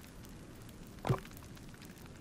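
Wooden planks knock down onto the ground.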